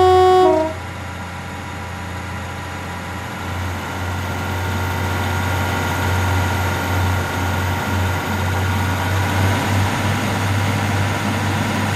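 A diesel train engine drones and grows louder.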